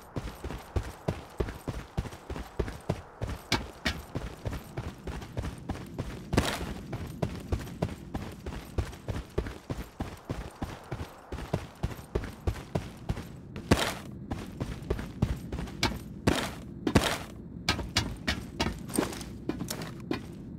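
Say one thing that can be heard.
Footsteps thud quickly and evenly on hard ground.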